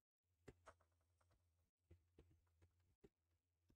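A gun fires sharp single shots.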